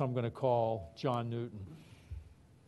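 An elderly man speaks loudly into a microphone.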